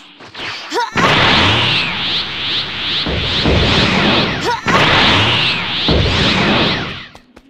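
A crackling energy aura roars steadily.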